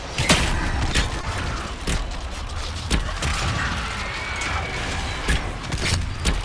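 Weapons clash and strike in quick, sharp hits.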